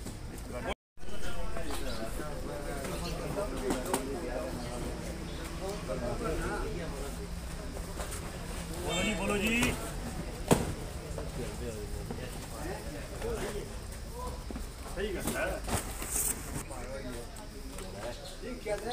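Several men talk nearby with animation.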